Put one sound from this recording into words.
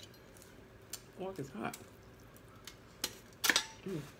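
A fork scrapes and clicks on a plate.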